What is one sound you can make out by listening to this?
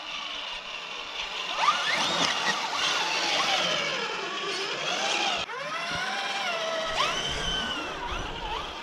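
Small tyres crunch over loose dirt.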